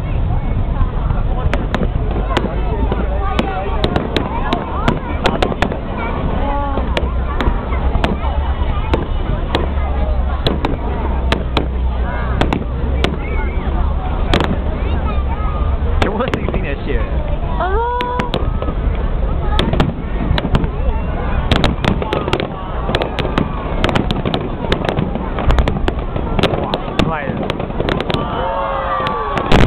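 Fireworks boom and pop overhead, outdoors.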